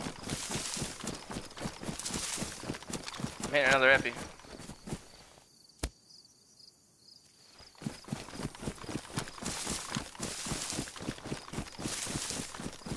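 Footsteps swish and thud quickly through tall grass.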